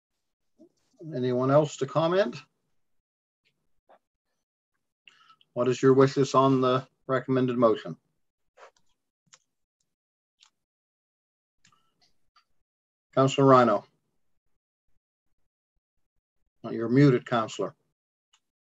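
A man speaks calmly in short phrases over an online call, with long pauses between them.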